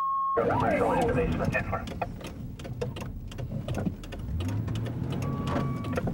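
A car engine hums while driving.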